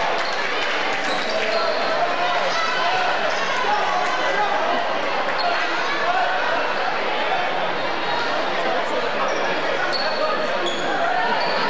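A crowd murmurs and chatters throughout a large echoing gym.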